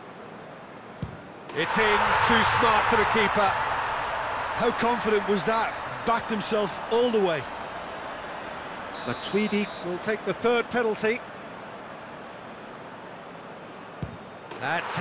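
A football is struck hard with a thud.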